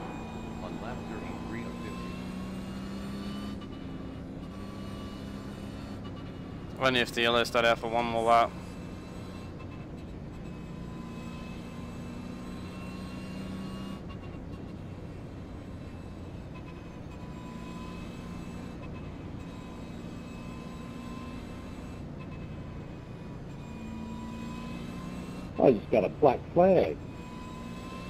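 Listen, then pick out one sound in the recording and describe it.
A race car engine drones steadily.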